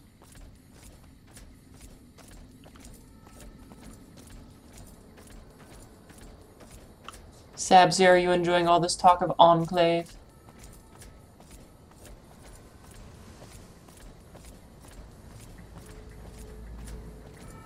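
Footsteps tread steadily on a path.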